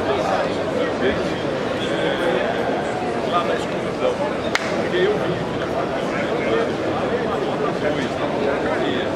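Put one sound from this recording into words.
An elderly man speaks with animation into a microphone close by.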